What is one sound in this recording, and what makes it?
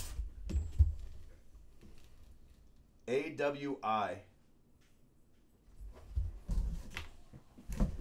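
Cardboard rustles and bumps as a box is handled.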